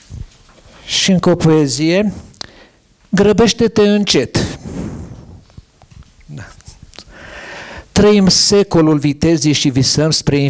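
An elderly man reads out aloud into a microphone, with expressive pauses.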